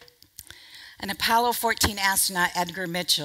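A woman speaks to an audience through a microphone in a large hall.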